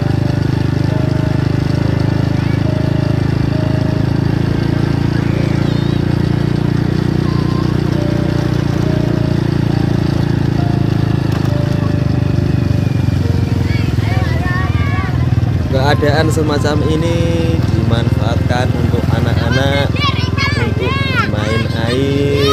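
A motorbike engine runs steadily close by.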